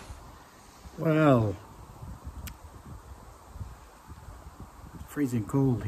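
A man speaks calmly close to a phone microphone.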